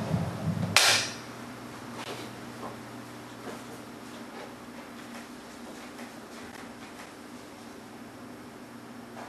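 An elderly man speaks quietly through a microphone in an echoing hall.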